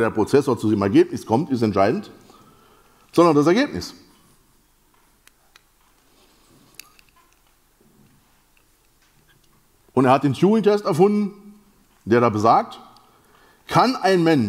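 A man lectures with animation through a microphone, with pauses between phrases.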